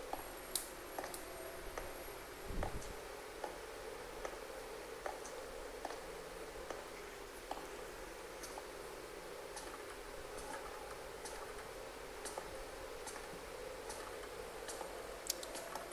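Footsteps tap on a hard floor at a steady walking pace.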